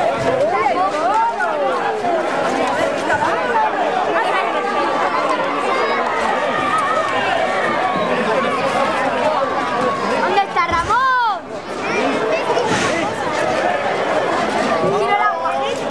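A crowd of men and women shouts and chatters loudly outdoors, close by.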